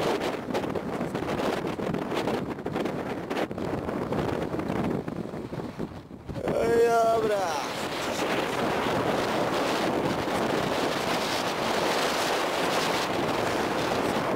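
Wind blows steadily across an open mountainside.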